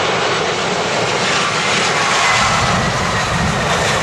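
A jet airliner's wheels touch down on the runway.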